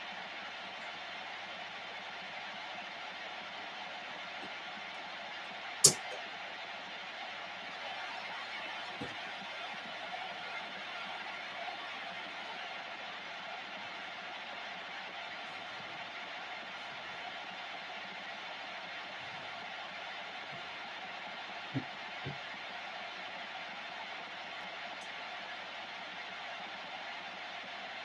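Static hisses steadily from a radio loudspeaker.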